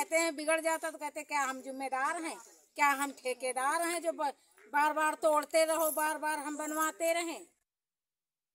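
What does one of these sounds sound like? A woman speaks with animation close to a microphone.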